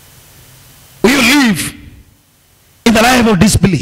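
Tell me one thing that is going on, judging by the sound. A man preaches loudly through a microphone, his voice echoing in a hall.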